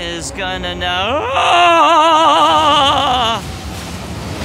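A huge creature lets out a long, wavering cry.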